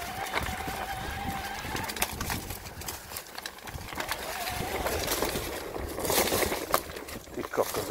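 Mountain bike tyres crunch over dry leaves.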